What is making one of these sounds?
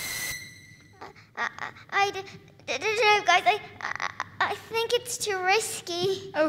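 Young children call out in high voices across an echoing hall.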